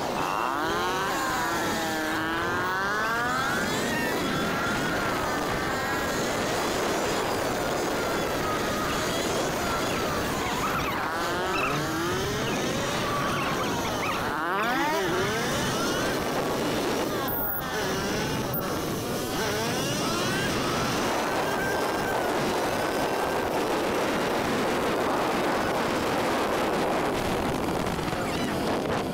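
A motorcycle engine revs up and down as the bike rides along.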